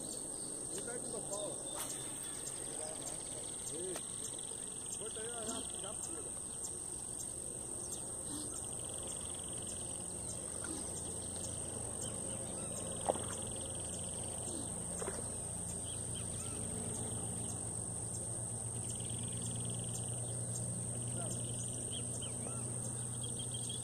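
A fishing reel ticks softly as line is wound in.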